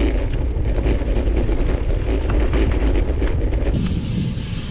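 Bicycle tyres crunch and rattle over a gravel track.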